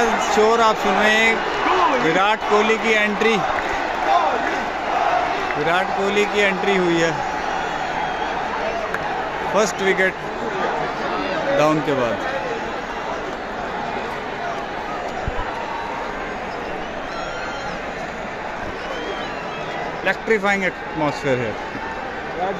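Men nearby shout and chant loudly.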